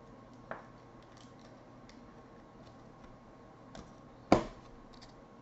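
Plastic card wrappers crinkle and rustle softly close by.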